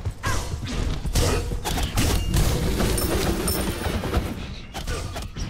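Game effects whoosh and crackle.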